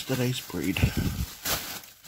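Plastic bread bags crinkle as a gloved hand handles them.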